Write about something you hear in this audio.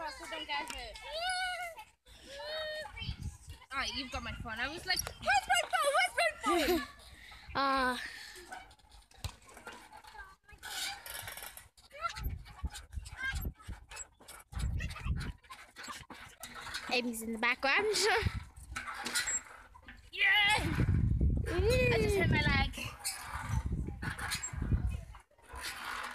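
Swing chains creak and rattle as a swing rocks back and forth.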